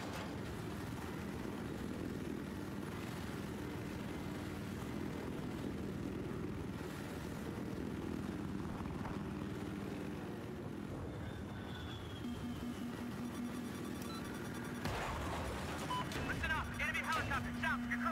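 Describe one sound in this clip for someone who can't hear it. A helicopter's rotor thumps and its engine whines steadily.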